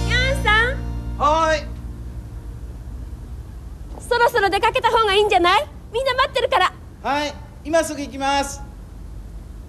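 A man calls out from above with animation.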